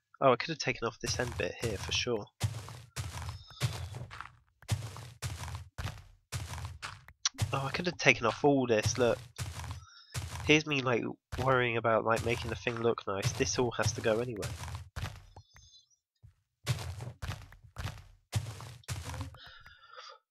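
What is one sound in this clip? Dirt crunches in quick, repeated bursts as blocks are dug away.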